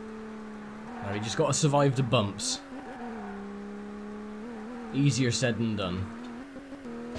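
Tyres squeal sharply in short bursts through corners.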